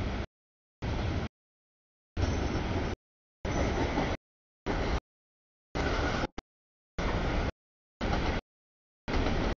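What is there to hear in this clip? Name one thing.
A freight train rumbles past close by, with the sound cutting in and out.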